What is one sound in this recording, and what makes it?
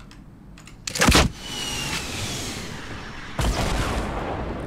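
A rocket launches with a loud blast and whooshes away.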